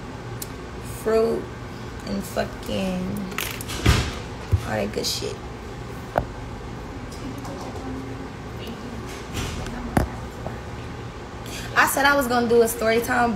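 A young woman talks casually close to a phone microphone.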